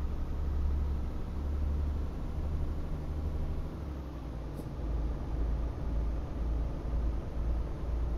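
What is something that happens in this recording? A truck engine hums with a deep, steady drone.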